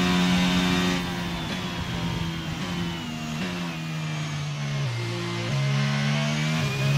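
A Formula 1 car's engine downshifts with quick blips as it brakes for a corner.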